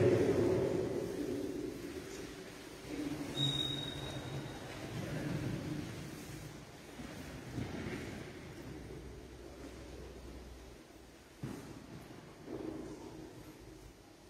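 An elderly man speaks slowly into a microphone in a large echoing hall.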